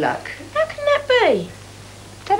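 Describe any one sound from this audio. A teenage boy speaks quietly and sulkily nearby.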